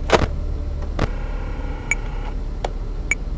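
Electronic static crackles briefly.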